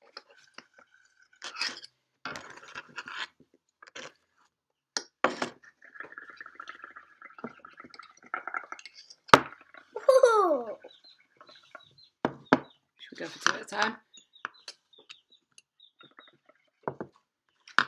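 Children blow bubbles through straws into cups of liquid, gurgling and bubbling.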